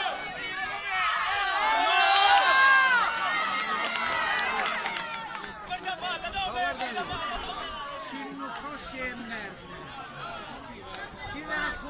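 A crowd of men shouts and cheers close by outdoors.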